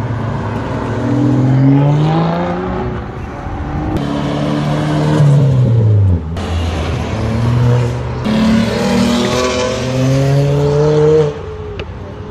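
Sports car engines rev loudly as cars accelerate past one after another.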